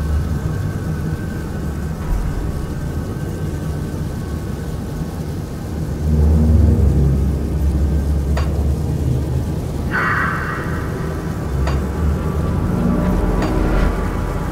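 A low, steady rumble of game ambience plays throughout.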